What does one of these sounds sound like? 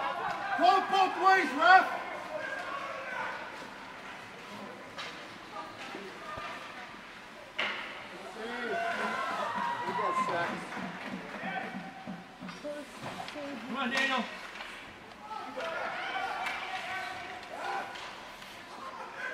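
Ice skates scrape across the ice.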